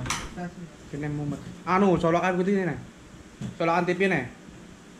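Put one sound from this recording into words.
A young man talks loudly and animatedly close by.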